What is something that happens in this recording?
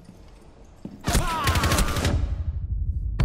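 Gunfire bursts out loudly at close range.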